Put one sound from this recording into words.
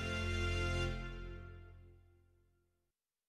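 Dramatic game music fades out.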